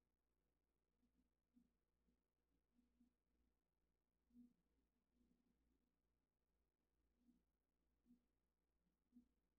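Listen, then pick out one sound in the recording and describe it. A paintbrush rubs softly against cloth.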